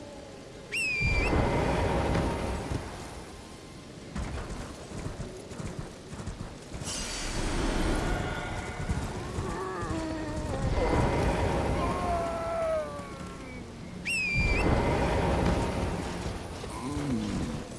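A horse gallops over soft ground.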